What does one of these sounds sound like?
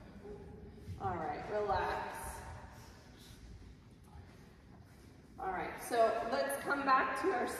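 A young woman speaks calmly nearby in a bare, slightly echoing room.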